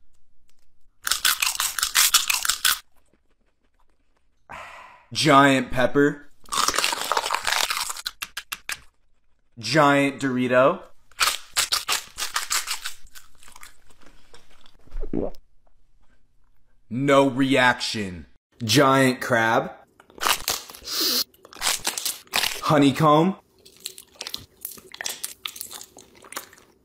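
A young man bites and chews crunchy food loudly.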